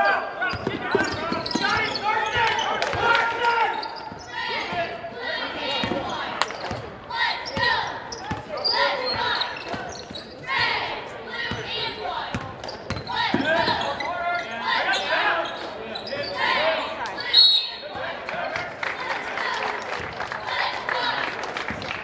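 A basketball bounces on a hard wooden floor in a large echoing hall.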